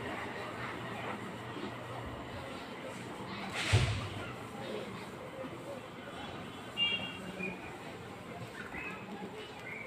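Pigeons coo softly nearby.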